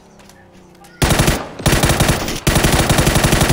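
A rifle fires in rapid bursts, loud and close.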